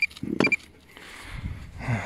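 A small trowel scrapes and digs through stony soil.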